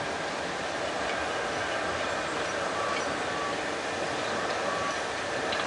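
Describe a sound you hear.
A steam locomotive hisses loudly as it rolls slowly along the track.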